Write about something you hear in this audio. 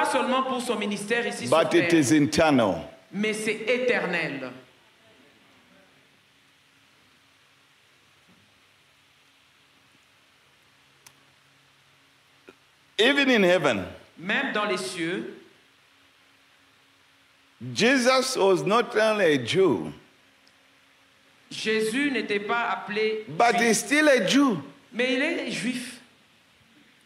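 A man preaches into a microphone with animation, heard through loudspeakers in bursts with pauses.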